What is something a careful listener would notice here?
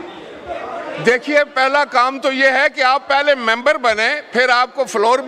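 An elderly man speaks loudly and steadily through a microphone.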